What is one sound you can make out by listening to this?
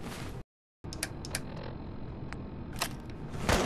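A dial on a handheld device clicks as it is turned.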